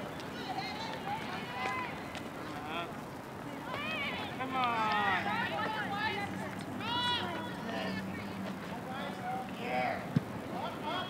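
Young women call out to each other across an open field, heard from a distance.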